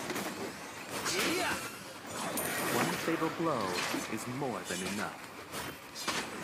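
Magic attacks whoosh and crackle in a video game battle.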